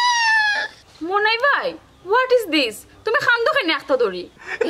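A young woman speaks loudly and angrily, close by.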